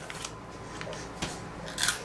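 A young boy crunches a crisp.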